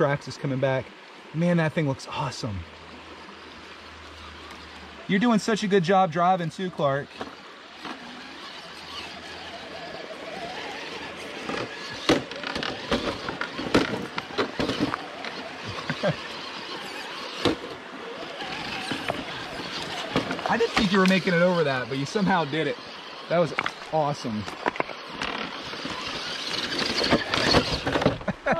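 A toy truck's small electric motor whirs.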